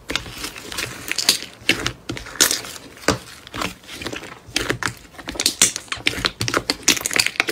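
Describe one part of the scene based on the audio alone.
Thick slime squelches and crackles as a hand kneads and presses it in a plastic tub.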